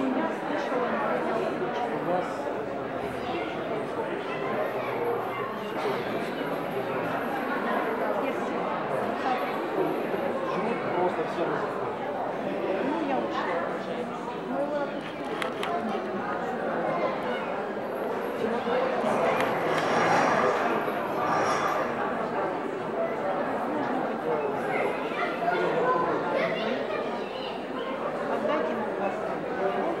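Many voices chatter in the background of a busy hall.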